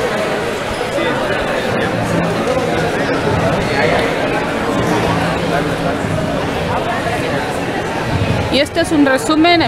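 A crowd of people chatters all around in a large, echoing hall.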